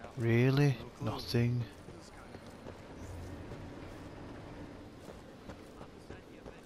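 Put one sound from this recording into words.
Footsteps run and walk over hard ground.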